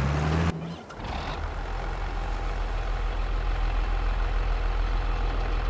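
A tractor engine idles with a low steady drone.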